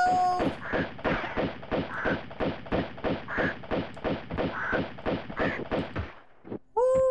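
Pistol shots fire in rapid succession.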